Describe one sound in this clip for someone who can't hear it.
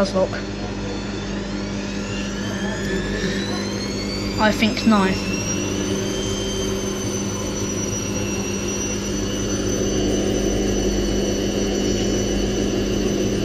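A front-loading washing machine's motor whines higher as the drum speeds up into a spin, then holds steady.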